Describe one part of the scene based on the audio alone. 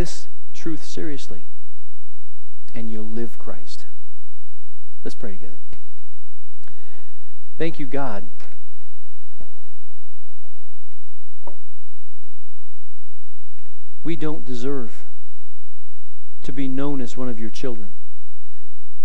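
A man speaks with animation into a microphone in a large echoing hall, pausing between phrases.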